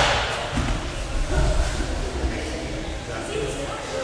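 Feet shuffle on mats as people kneel down.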